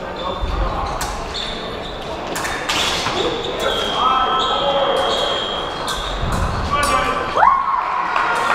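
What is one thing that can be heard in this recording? Fencing blades click and clash against each other.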